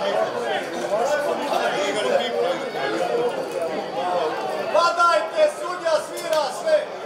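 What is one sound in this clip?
A man talks with animation, heard close through a microphone.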